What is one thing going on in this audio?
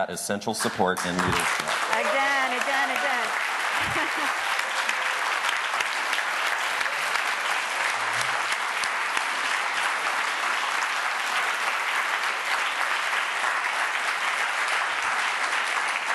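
An audience applauds steadily.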